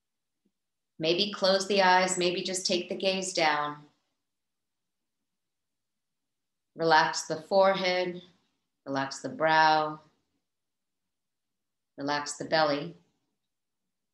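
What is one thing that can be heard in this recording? A woman speaks calmly and slowly through a microphone, with long pauses.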